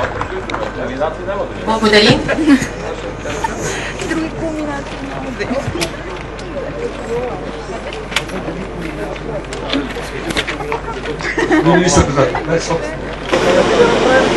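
Men talk nearby in an outdoor crowd.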